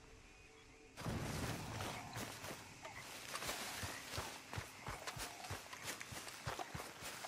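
Footsteps rustle through dense leafy undergrowth.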